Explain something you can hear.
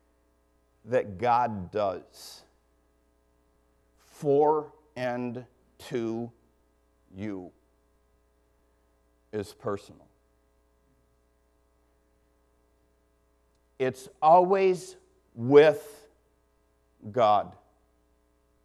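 A middle-aged man speaks slowly and deliberately into a microphone, with pauses between phrases.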